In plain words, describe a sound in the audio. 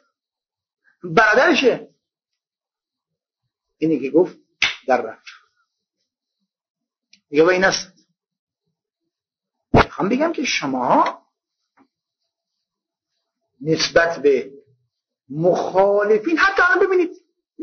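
An elderly man speaks slowly and solemnly through a microphone, in short phrases with pauses.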